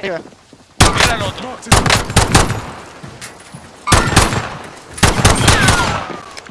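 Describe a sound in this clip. Gunshots ring out loudly, one after another.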